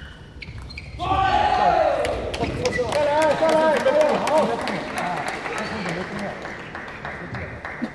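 A small crowd cheers and shouts in a large echoing hall.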